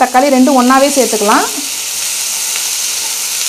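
A wooden spatula scrapes and stirs vegetables in a pan.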